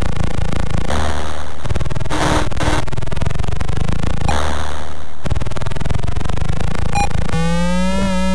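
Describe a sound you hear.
A retro video game boat engine rumbles.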